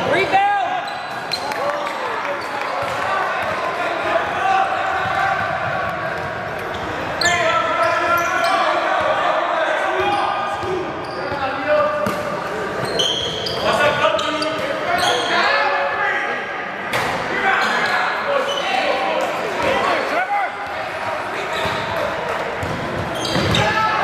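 Spectators and players shout and cheer in an echoing gym.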